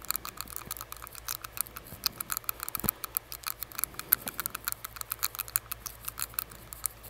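Fingers tap and click rapidly right by a microphone.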